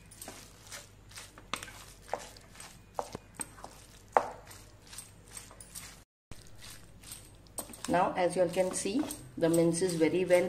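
A wooden spoon scrapes and stirs food in a frying pan.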